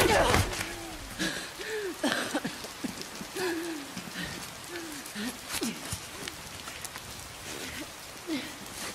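A young woman groans and sobs in pain.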